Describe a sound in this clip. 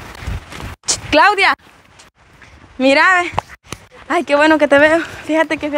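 A young woman talks loudly with animation nearby.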